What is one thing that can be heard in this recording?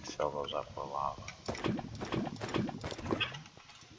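A bucket scoops up liquid with a splashy slurp.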